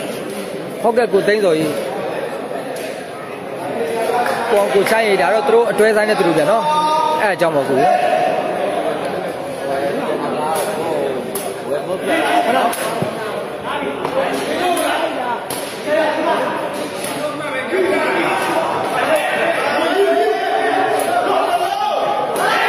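A crowd chatters and cheers in a large echoing hall.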